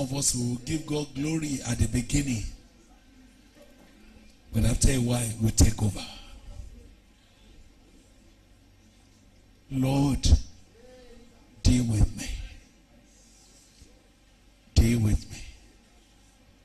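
A man preaches loudly through a microphone in short bursts, with pauses between phrases.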